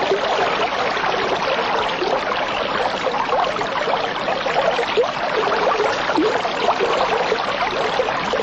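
Water bubbles and gurgles steadily through an aquarium filter.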